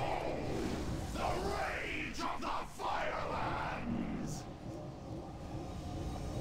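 Magic missiles whoosh in quick bursts.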